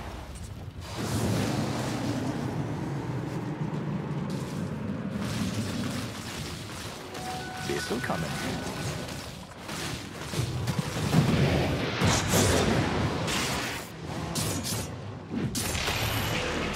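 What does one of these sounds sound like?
Spells and weapon blows crash and clash in a game battle.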